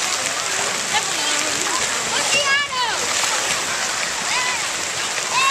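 Water splashes and laps around floating pads.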